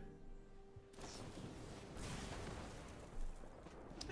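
A magical electric crackle rings out from a game.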